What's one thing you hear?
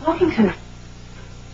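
A woman speaks briefly nearby.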